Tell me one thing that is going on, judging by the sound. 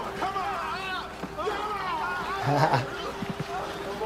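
A middle-aged man laughs close by.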